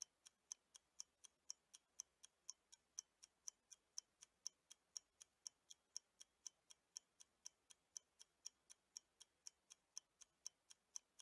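A clock ticks quickly and steadily.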